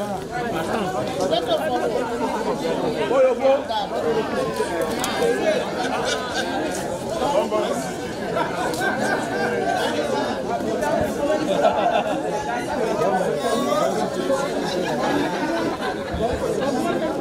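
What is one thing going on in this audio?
A crowd of men and women chat and mingle outdoors.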